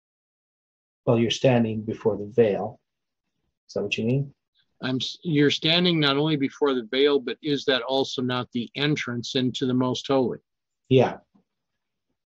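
An older man speaks with animation over an online call.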